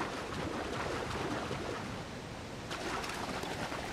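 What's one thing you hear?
Water splashes around wading legs.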